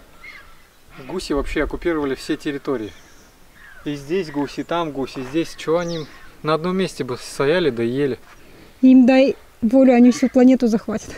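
A young man speaks calmly and close by, outdoors.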